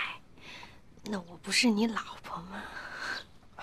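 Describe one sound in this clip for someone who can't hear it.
A young woman speaks softly and warmly, close by.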